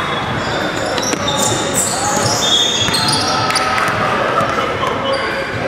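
Young men call out to each other across a large echoing hall.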